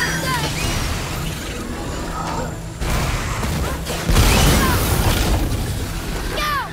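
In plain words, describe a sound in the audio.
An icy beam blasts with a loud roaring hiss.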